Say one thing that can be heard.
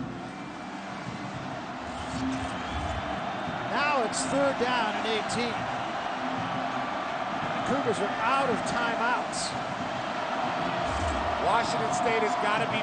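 A large crowd cheers and roars in an open stadium.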